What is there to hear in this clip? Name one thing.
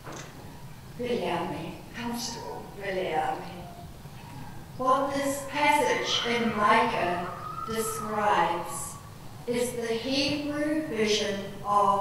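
A woman speaks calmly into a microphone over loudspeakers in a large room.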